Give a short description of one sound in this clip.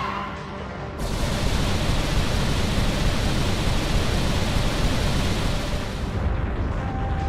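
Air rushes past loudly.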